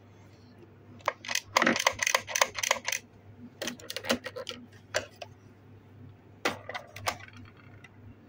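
Plastic toy parts click and rattle as they are handled.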